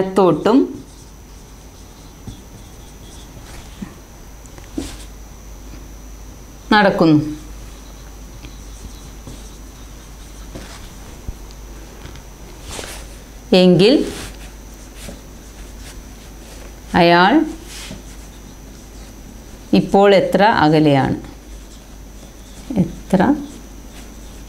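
A woman speaks calmly in short phrases with pauses between them.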